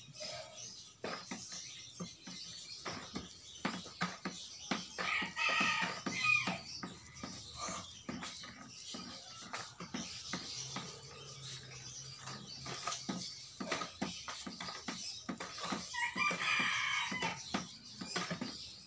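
A stick plunges and knocks repeatedly in a plastic bucket of water.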